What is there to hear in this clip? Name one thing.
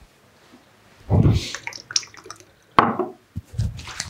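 A man rubs his hands together briskly.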